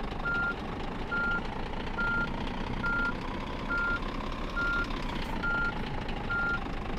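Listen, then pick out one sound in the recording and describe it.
A diesel truck engine idles as the truck creeps along.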